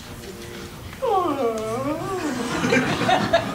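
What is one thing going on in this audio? A woman yawns loudly.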